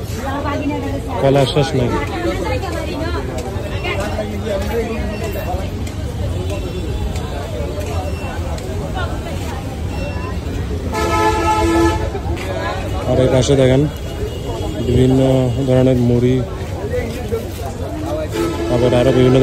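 A busy crowd chatters all around.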